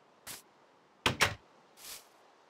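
A wooden door creaks open with a thud.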